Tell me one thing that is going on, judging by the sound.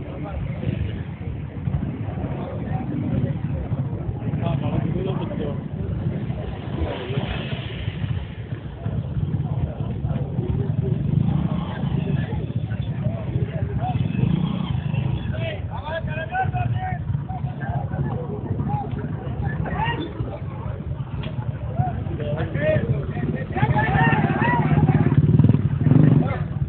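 Motorbike engines idle and rumble nearby.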